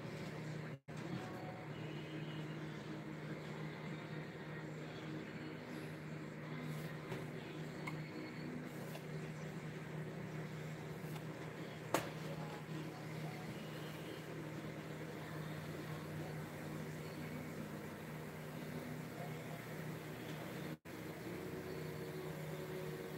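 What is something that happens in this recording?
A gas burner hisses softly.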